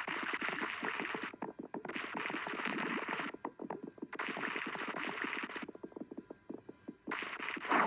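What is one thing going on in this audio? Many small balls clatter and click against each other as they tumble.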